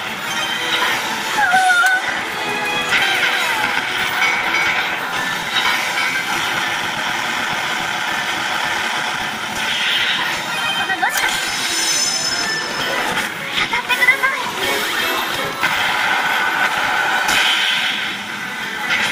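Game music plays steadily throughout.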